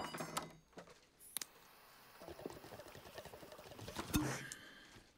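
Water bubbles in a pipe.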